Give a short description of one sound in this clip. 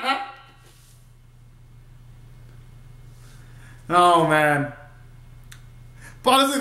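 A young man sings short bursts of notes close by.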